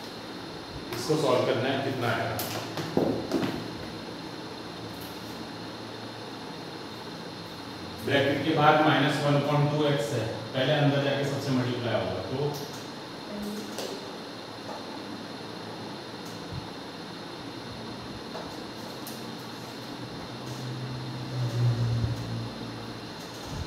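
A man speaks calmly close by, explaining.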